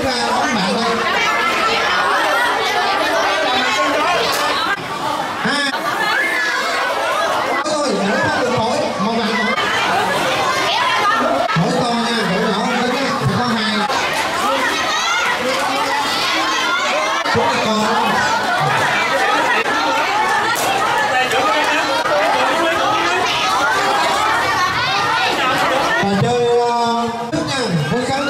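A crowd of children chatters and shouts.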